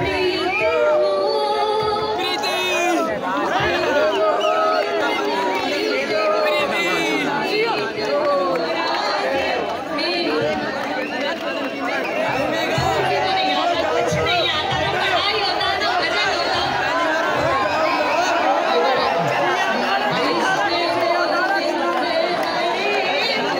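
A woman sings into a microphone over loudspeakers.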